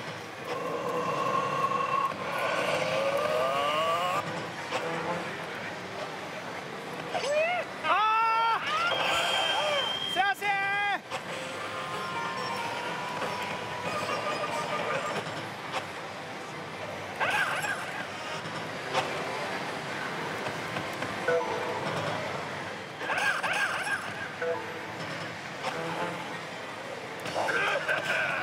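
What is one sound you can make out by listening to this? Slot machine buttons click under a finger.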